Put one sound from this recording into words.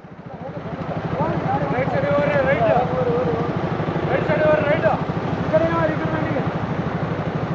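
A man talks loudly nearby outdoors.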